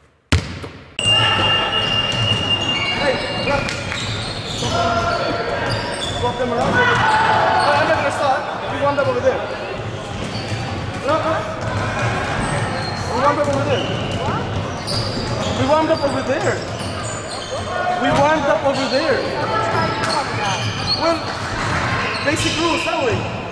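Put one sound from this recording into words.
Several men talk and call out to each other in a large echoing hall.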